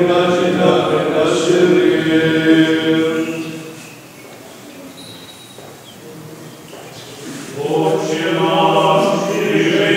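Men's voices chant in slow, sustained unison, echoing in a large hall.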